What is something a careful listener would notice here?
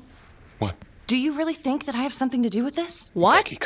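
A woman speaks with tense emphasis.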